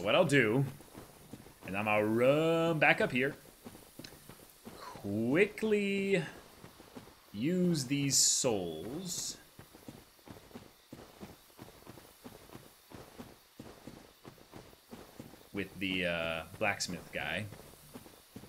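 A young man talks casually into a close microphone, in bursts with pauses.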